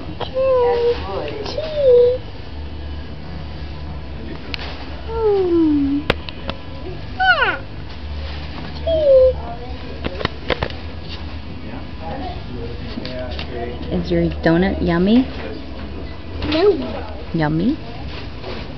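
A toddler babbles and giggles close by.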